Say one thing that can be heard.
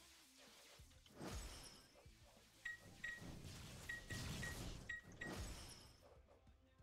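Magic spells whoosh and burst.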